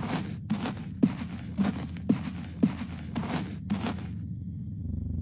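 Footsteps fall steadily on a paved road.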